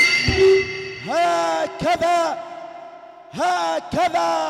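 A man chants loudly into a microphone through loudspeakers.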